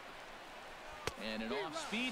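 A baseball smacks sharply into a glove.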